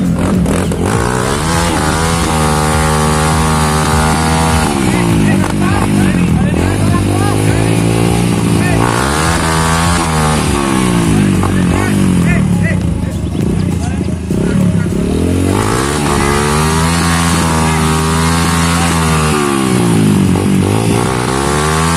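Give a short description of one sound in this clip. A dirt bike engine revs hard again and again, close by.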